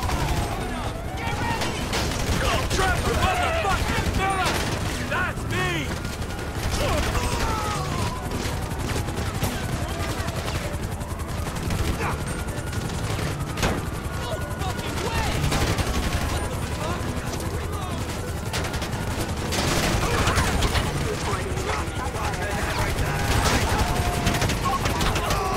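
Police sirens wail.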